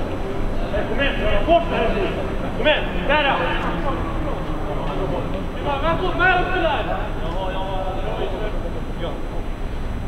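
Players shout to each other across an open outdoor pitch.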